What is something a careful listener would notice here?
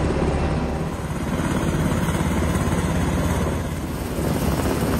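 A helicopter's rotor thuds loudly overhead.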